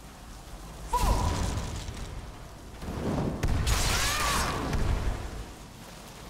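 A frost spell crackles and hisses in bursts.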